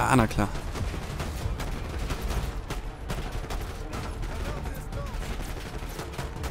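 Gunshots crack in rapid bursts nearby.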